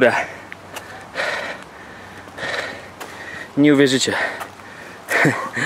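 A man breathes hard and grunts with strain.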